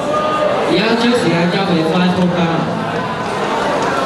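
A young man speaks into a microphone, heard through loudspeakers in a large hall.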